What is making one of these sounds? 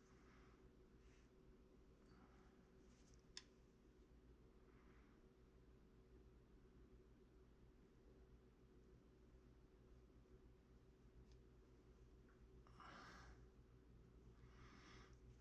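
Fingers rub and smooth soft clay.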